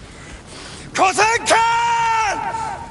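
A man shouts loudly and with strain, close by.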